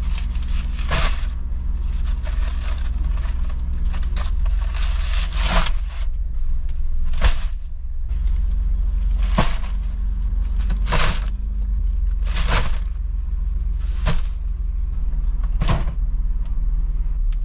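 Heavy packages thump down onto a car floor.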